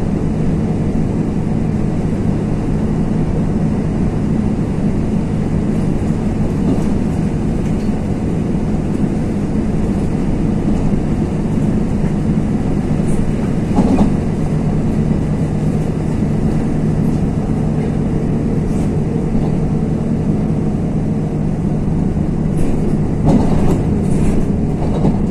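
A vehicle's engine hums steadily from inside as it drives along.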